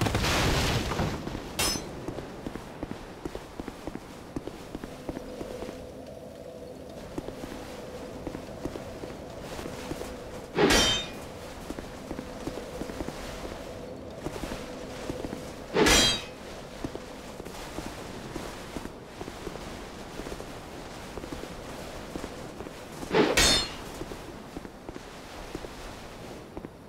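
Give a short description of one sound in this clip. Armoured footsteps clank on stone throughout.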